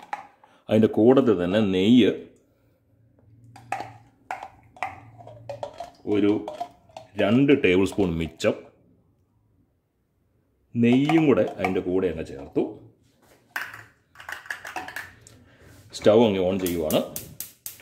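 A spoon scrapes and taps against a metal pot.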